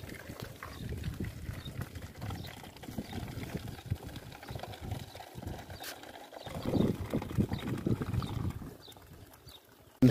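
Water trickles from a tap into a plastic bottle.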